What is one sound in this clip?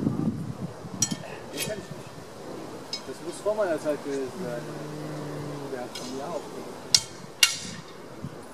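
Steel swords clash and clink.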